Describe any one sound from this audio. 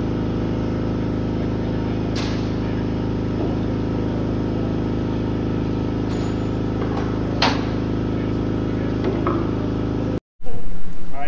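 A motor hums loudly and steadily.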